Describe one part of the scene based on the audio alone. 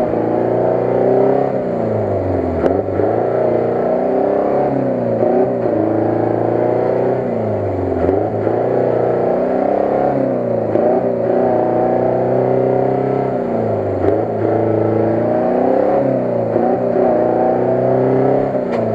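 A truck engine roars loudly, revving up and down again and again.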